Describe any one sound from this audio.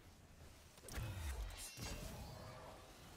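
An explosion booms with crackling sparks.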